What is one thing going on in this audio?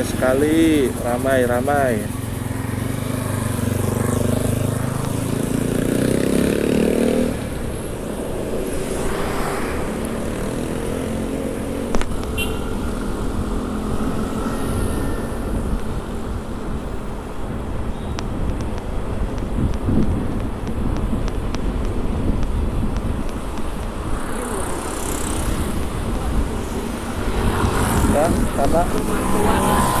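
Traffic rumbles along a street outdoors.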